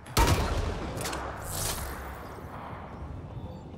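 An energy blast bursts with a loud whoosh.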